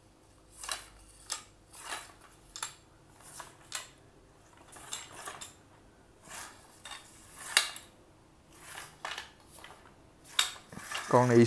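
Fingers rub and scrape along a rough rod grip.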